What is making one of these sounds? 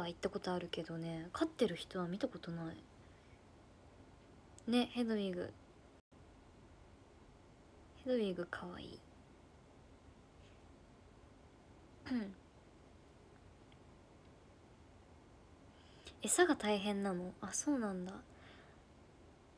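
A young woman speaks calmly in short bursts, close to a microphone.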